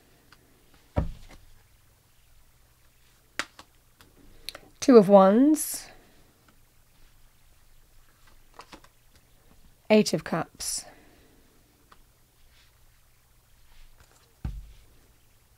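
Playing cards are laid down on a table with soft taps.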